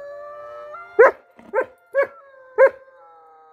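A dog barks in short, sharp bursts close by.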